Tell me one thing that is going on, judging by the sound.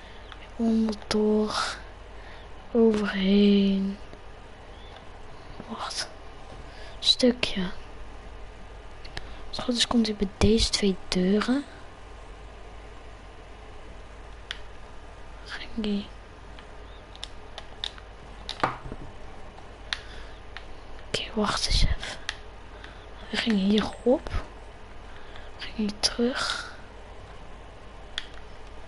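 Short sharp clicks of building pieces snapping into place come now and then.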